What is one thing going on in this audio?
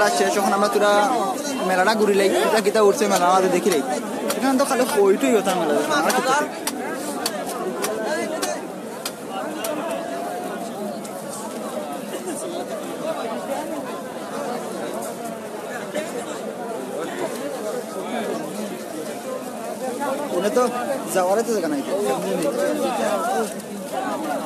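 A crowd of men talk and shout loudly close by.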